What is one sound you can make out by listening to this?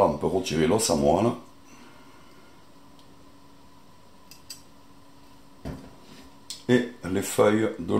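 A metal ladle scrapes and clinks against a pot.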